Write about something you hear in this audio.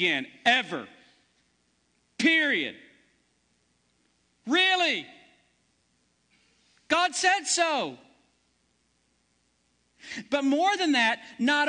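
A man preaches through a microphone with animation in an echoing hall, pausing between phrases.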